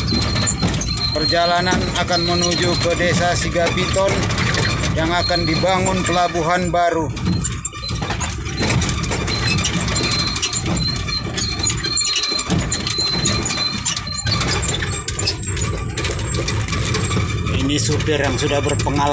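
A vehicle rattles and bumps over a rough dirt track.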